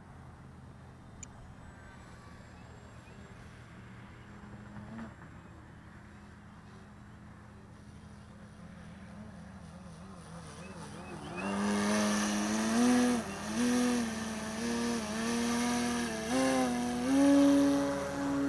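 A model airplane engine drones in the distance, then buzzes loudly close by, rising and falling in pitch.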